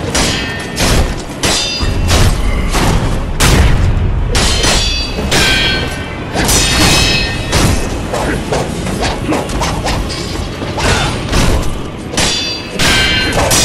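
Swords clash with sharp ringing metallic clangs, again and again.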